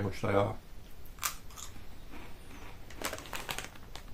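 A man crunches a crisp while chewing.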